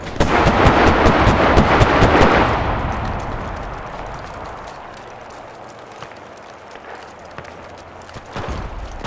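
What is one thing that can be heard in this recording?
An aircraft engine drones as it passes overhead and fades away.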